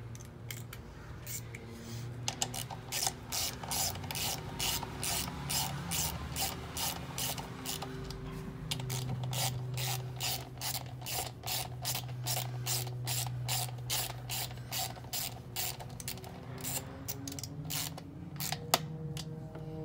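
A ratchet wrench clicks rapidly and steadily.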